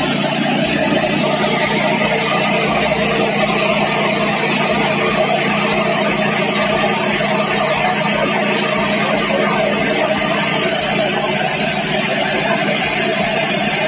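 Rice grains pour and rustle into a tub.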